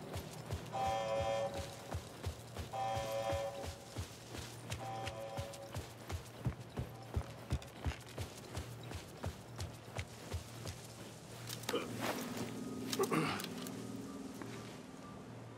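Footsteps crunch steadily over leaves and dirt.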